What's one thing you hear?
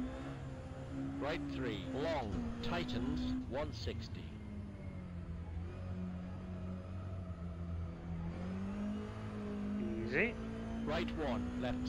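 A racing car engine hums steadily, rising and falling in pitch.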